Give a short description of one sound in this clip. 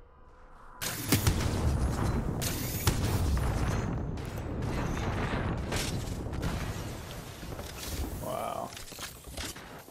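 Gunshots fire in rapid bursts with loud booming blasts.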